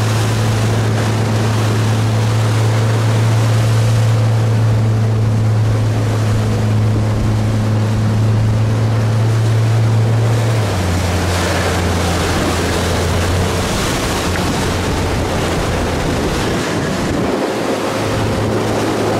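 Choppy waves slosh and splash.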